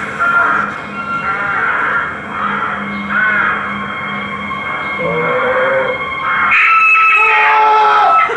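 A young man shouts loudly.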